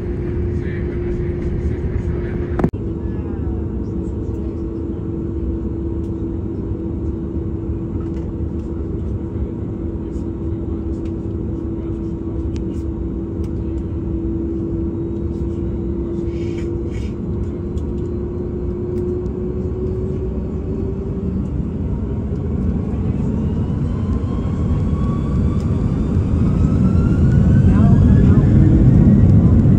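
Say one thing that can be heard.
A jet engine hums steadily and then roars louder with a rising whine.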